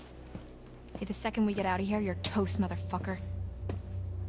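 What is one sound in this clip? A woman shouts angrily close by.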